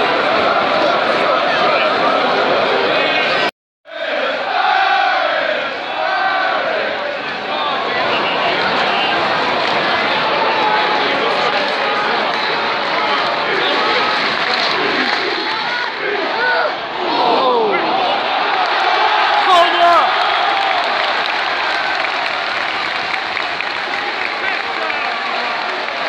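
A large crowd of men chants and sings loudly in an open-air stadium.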